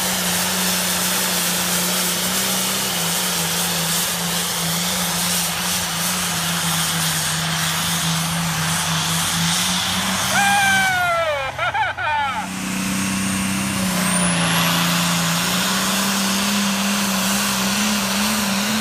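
A tractor engine roars loudly and steadily under heavy strain.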